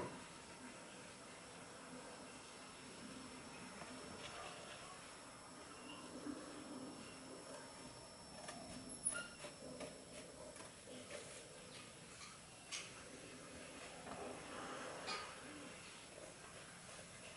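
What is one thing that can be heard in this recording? Cardboard rustles and flaps as a man handles it.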